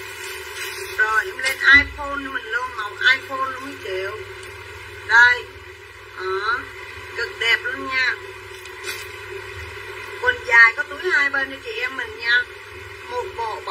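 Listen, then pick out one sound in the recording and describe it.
A woman talks close by with animation.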